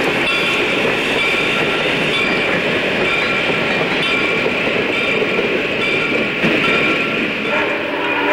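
Wheels squeal against the rails.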